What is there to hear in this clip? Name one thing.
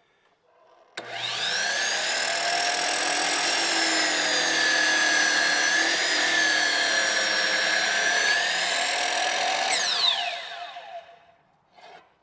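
A miter saw motor whines loudly as the blade spins up and slices through wood, then winds down.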